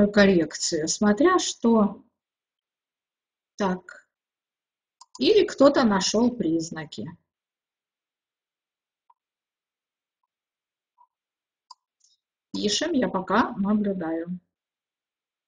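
An elderly woman speaks calmly into a microphone, with long pauses.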